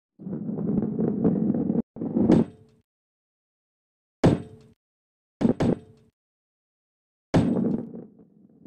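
A heavy ball rolls and rumbles along a wooden track.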